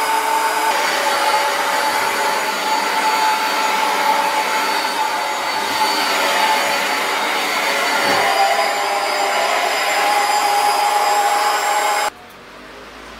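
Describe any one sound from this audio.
A vacuum cleaner whines steadily nearby.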